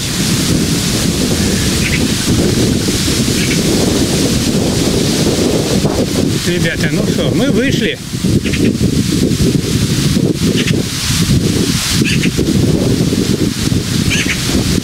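Strong wind buffets the microphone outdoors with a steady low roar.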